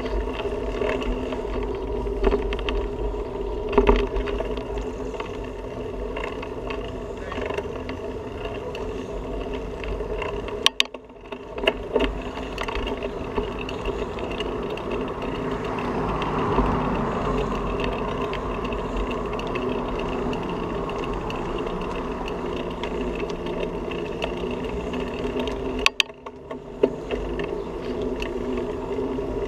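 Wind rumbles past the rider.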